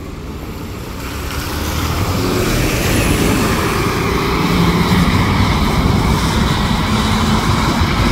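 A bus engine roars as the bus drives past close by.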